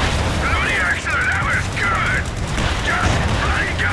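Gunfire crackles in short bursts.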